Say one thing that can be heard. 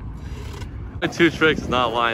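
Skateboard wheels roll across concrete.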